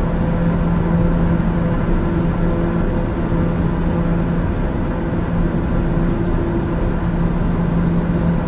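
A single-engine turboprop drones steadily in cruise, heard from inside the cabin.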